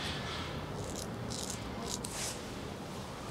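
A razor scrapes over stubble.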